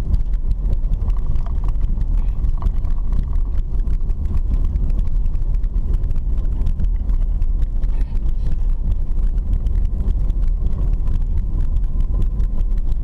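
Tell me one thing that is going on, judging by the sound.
A car engine rumbles steadily inside the car.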